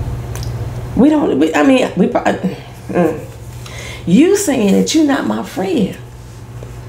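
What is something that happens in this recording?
A woman speaks calmly and earnestly close to a microphone.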